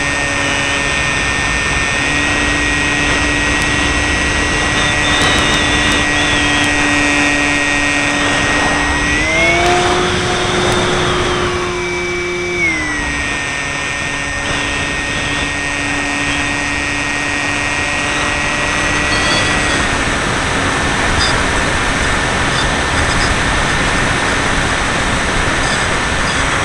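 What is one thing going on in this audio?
A small model plane's electric motor whines steadily, rising in pitch briefly.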